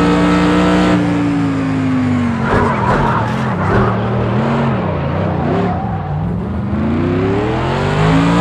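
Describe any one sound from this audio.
A racing car engine slows and revs up and down while braking into a corner.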